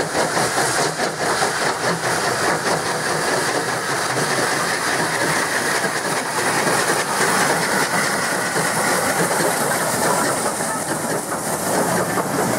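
Carriages rumble and clatter along the rails.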